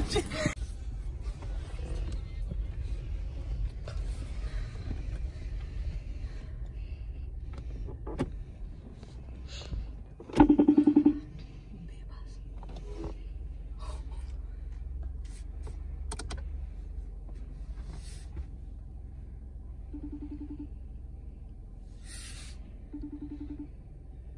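A car key fob's buttons click.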